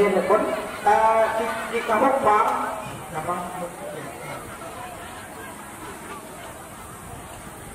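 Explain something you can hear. A crowd of men and women chatters nearby outdoors.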